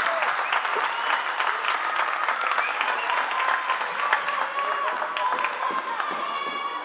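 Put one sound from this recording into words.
Plastic sticks clack against a ball.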